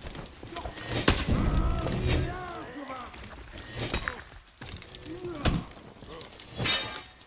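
Metal weapons clash and clang.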